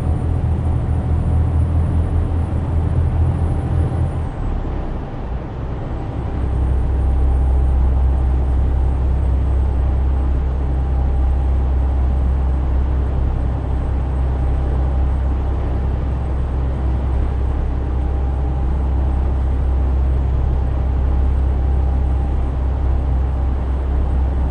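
Tyres hum on a motorway road.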